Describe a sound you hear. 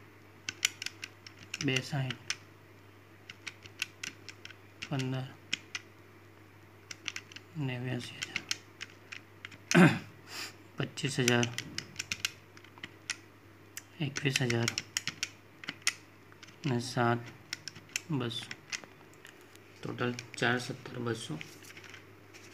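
Calculator keys click as they are pressed.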